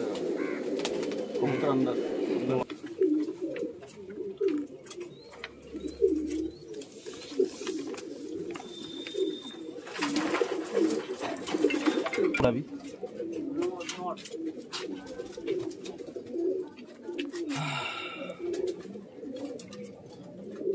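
Pigeons coo softly and repeatedly nearby.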